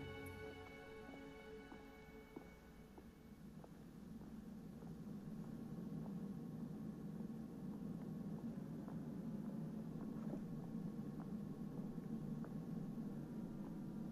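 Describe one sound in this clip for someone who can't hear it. Footsteps thud softly as a person jogs.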